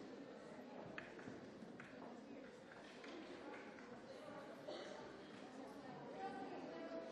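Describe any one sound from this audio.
A large crowd of young people chatters and murmurs in an echoing hall.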